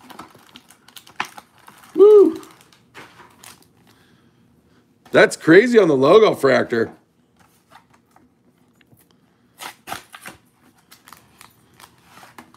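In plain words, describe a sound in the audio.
A plastic wrapper crinkles and tears open.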